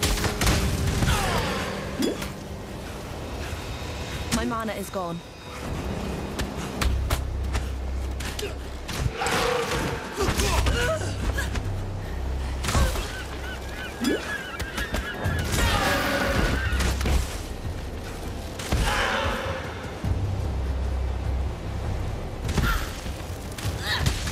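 Magic spells burst and crackle in quick bursts.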